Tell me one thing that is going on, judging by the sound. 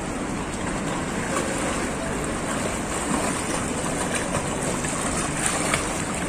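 Water splashes as a swimmer kicks and strokes through a pool.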